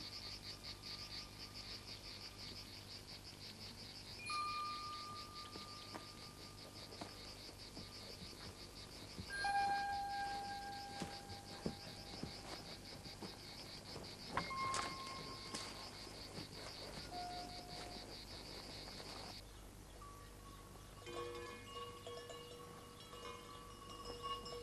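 Horses' hooves thud on dry ground.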